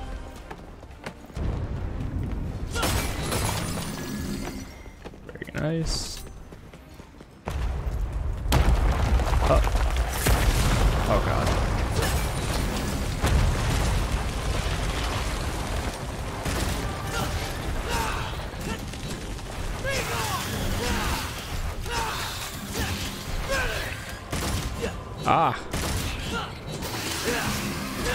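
Swords clang and slash in rapid fighting.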